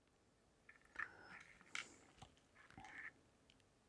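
Small beads click softly between fingers.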